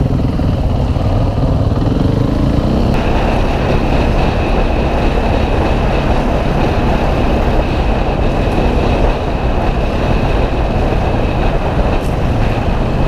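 A motorcycle engine drones up close as the bike rides along.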